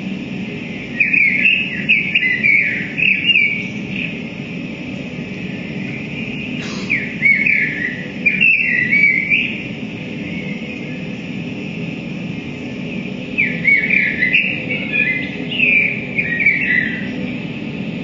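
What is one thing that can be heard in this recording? Electronic tones chirp and warble through amplifiers in short bursts.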